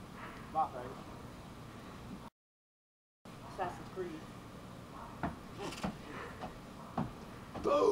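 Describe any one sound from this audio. Shoes knock and scrape against a wooden railing.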